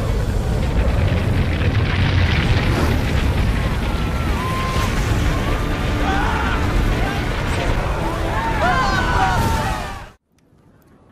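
A huge fiery blast roars with a deep rumble.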